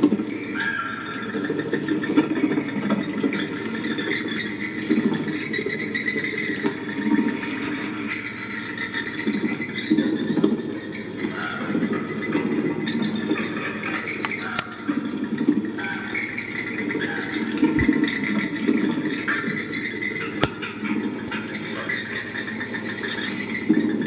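A motorised toy plays a tinny, chattering tune through a small loudspeaker.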